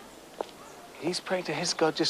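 A young girl speaks up nearby.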